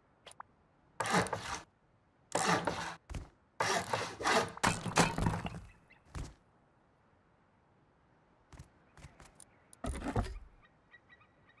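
Heavy building blocks slam into place with loud crashing thuds.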